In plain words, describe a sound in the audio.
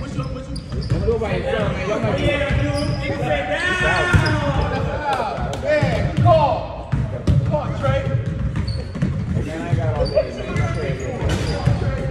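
Young men talk and call out loudly in a large echoing gym.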